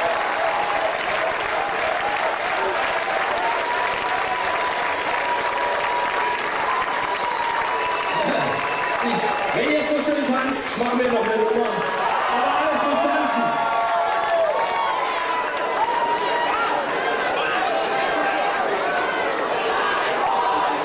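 A big band plays lively jazz on an outdoor stage, heard from a distance.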